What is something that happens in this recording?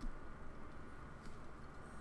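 A man sips from a bottle.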